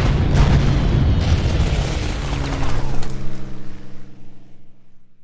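A deep rumbling blast booms and slowly fades.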